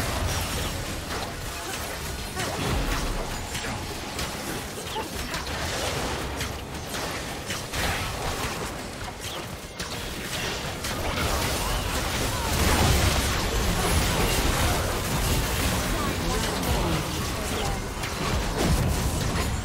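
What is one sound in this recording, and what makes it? Spell blasts and sword hits clash in a fast fantasy battle.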